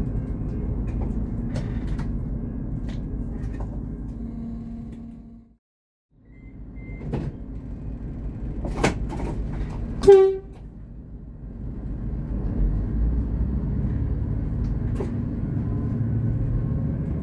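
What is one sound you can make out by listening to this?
A train engine rumbles steadily close by.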